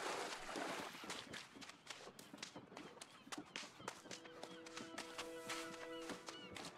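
Footsteps crunch quickly on sand and dirt.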